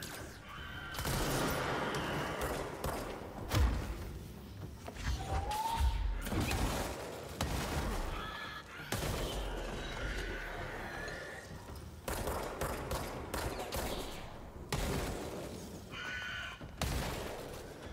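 Explosions boom and roar.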